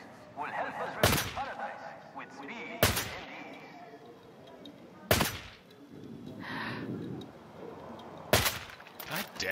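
A rifle fires loud, sharp shots every couple of seconds.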